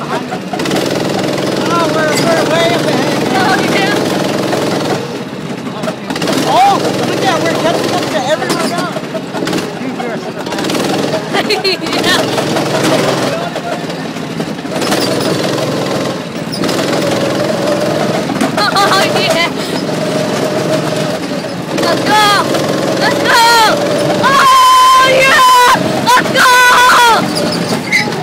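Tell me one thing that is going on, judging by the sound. Go-kart tyres hum and rumble on pavement.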